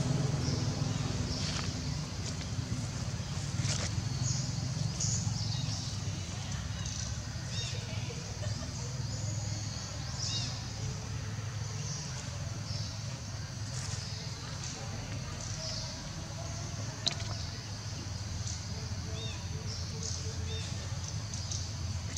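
A small monkey chews food quietly.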